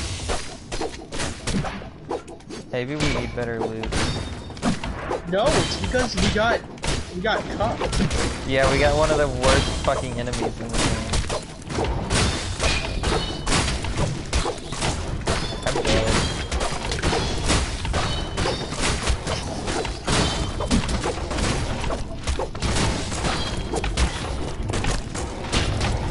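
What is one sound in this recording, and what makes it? Game combat effects clash and thud rapidly.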